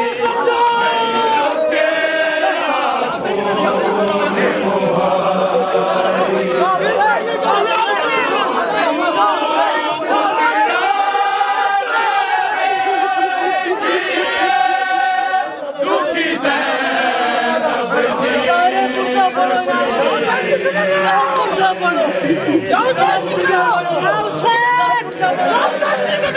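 A large crowd of men chant loudly together.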